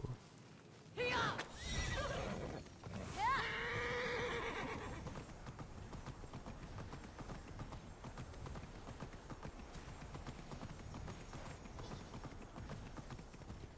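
A horse gallops over hard ground.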